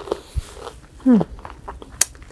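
A young woman makes a short, sliding sound of delight close to a microphone.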